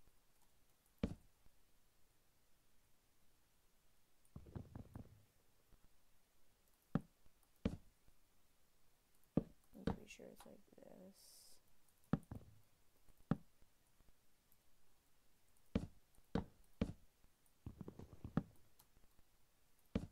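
Wooden blocks are placed with short, dull knocks.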